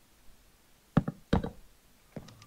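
A wooden block thuds sharply as it is placed.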